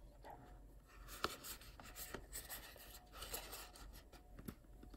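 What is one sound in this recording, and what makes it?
A cardboard box crinkles and rustles in a hand.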